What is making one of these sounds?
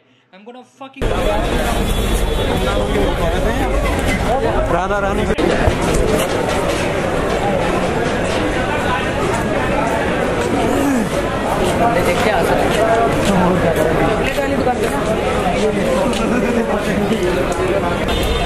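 A crowd chatters in a busy street.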